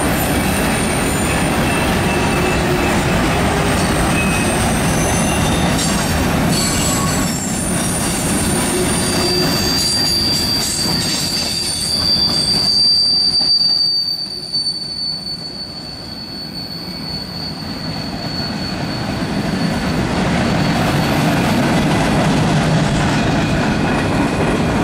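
A long freight train rumbles and clatters past on steel rails.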